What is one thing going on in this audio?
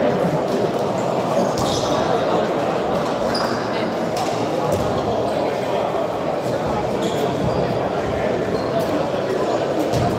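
Spectators murmur nearby.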